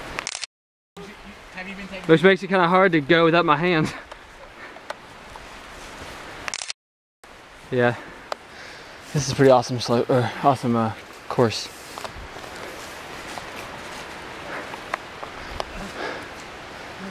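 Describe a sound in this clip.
Footsteps crunch on dry leaves and rocks.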